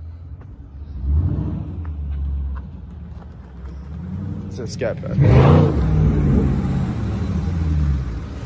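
A powerful car engine rumbles deeply and revs up loudly nearby.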